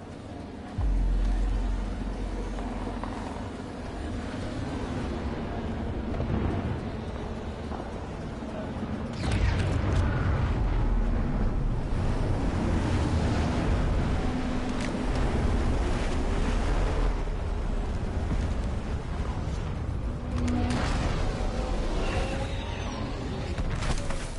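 Footsteps run quickly over dirt and gravel.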